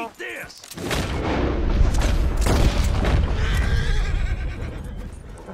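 A gunshot bangs and echoes.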